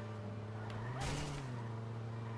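A car crashes into a signpost with a loud thud.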